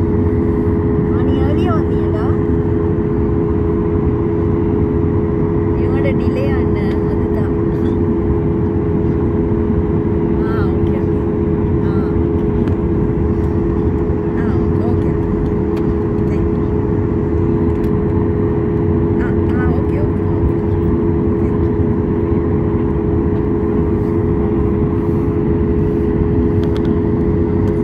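Airplane wheels rumble over the taxiway.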